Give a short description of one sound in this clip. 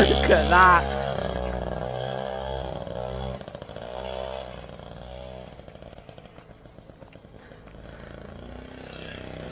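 A small motorbike rides away and its engine fades into the distance.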